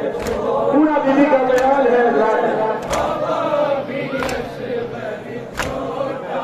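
A crowd of men beats their chests in a slow, even rhythm.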